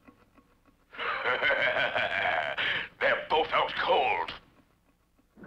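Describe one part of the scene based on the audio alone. A man speaks in a deep, sly voice.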